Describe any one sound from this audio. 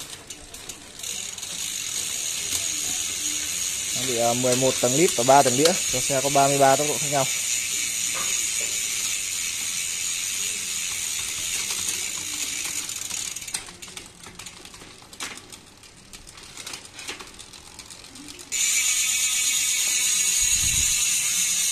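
A bicycle rear wheel spins with a fast, steady ticking of its freewheel.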